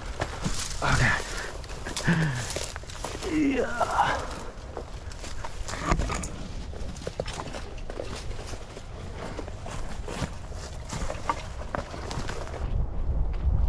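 Twigs and branches scrape and snap against clothing.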